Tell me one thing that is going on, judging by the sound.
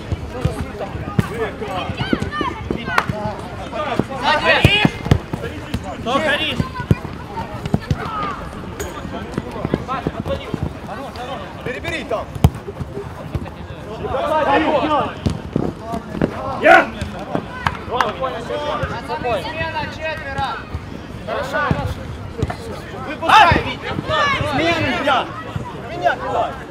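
A football thuds as players kick it.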